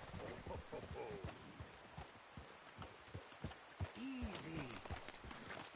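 Horse hooves thud steadily on snowy ground.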